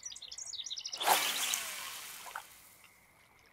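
A fishing line whizzes out as a rod casts.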